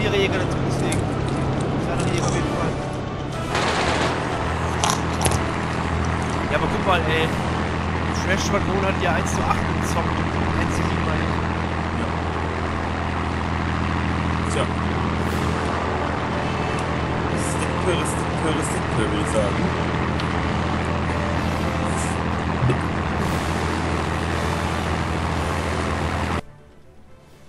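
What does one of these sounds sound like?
A propeller plane's engine drones steadily at close range.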